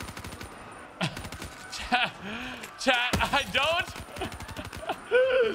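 A young man talks close to a microphone and laughs.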